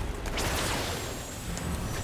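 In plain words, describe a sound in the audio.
A magic beam zaps in a game's sound effects.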